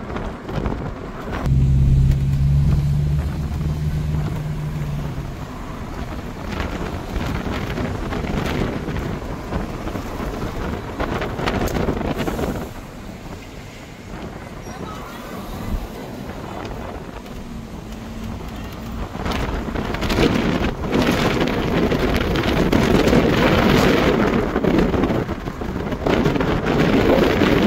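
Traffic passes along a nearby road outdoors.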